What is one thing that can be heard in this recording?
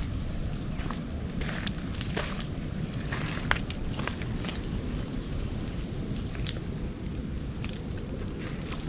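Steady rain falls on leaves outdoors.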